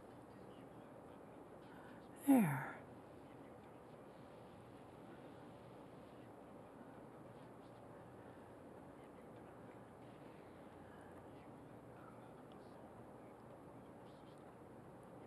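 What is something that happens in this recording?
A paintbrush dabs softly on canvas.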